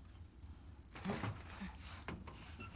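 A person scrambles into a metal duct with a thud.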